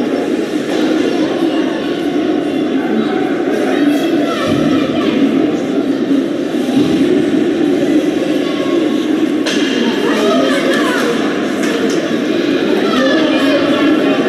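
Spectators chatter in a large echoing arena.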